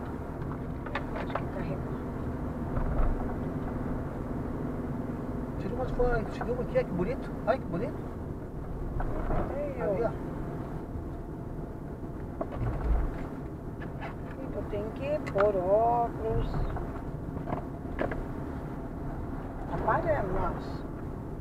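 A car engine hums steadily with road noise from the tyres, heard from inside the car.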